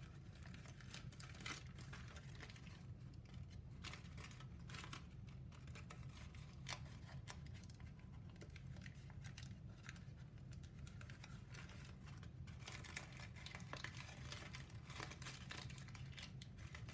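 Stiff paper crinkles and rustles as hands fold it up close.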